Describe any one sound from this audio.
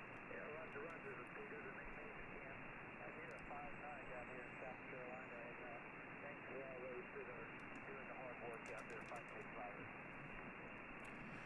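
Radio static hisses steadily.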